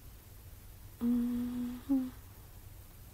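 A young woman hums a short tune close by.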